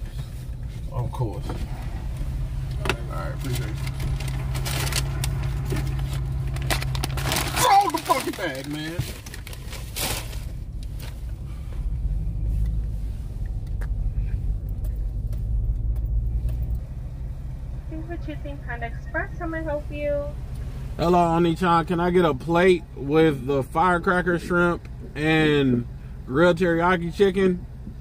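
A man talks up close inside a car.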